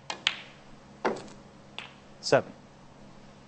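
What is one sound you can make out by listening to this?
Snooker balls knock against each other.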